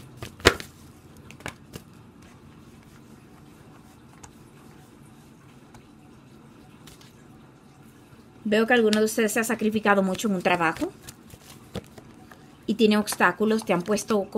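Playing cards tap and slide softly onto a table.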